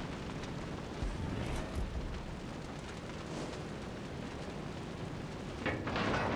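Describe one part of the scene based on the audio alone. Naval guns fire with heavy booms.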